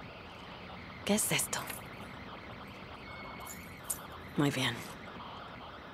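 A young woman speaks quietly to herself, close by.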